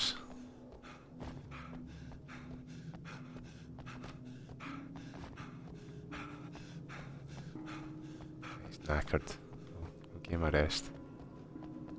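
Footsteps thud up metal stairs.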